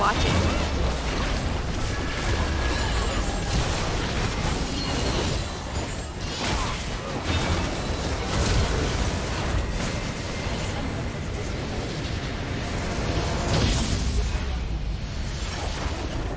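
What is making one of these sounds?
Game spells crackle and blast in a hectic battle.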